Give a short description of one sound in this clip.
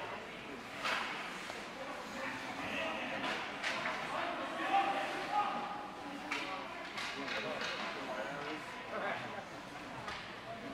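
A crowd of spectators chatters in a large echoing rink.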